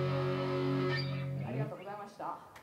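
A band's electric guitars and bass ring out a loud final chord that cuts off.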